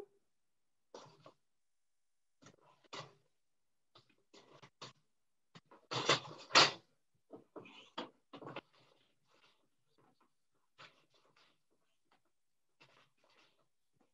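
A wooden loom beater knocks against the cloth.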